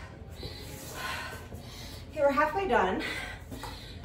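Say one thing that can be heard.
A rubber mat flaps and thumps on concrete.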